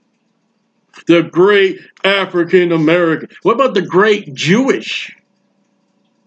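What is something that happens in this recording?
A man speaks calmly into a microphone, heard as if over an online call.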